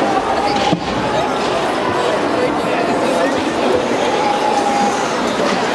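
A large crowd cheers and shouts in a large echoing arena.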